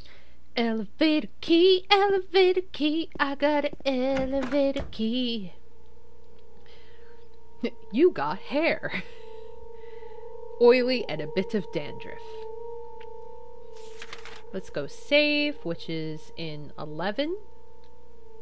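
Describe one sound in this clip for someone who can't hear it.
A young woman talks with animation, close to a microphone, in bursts.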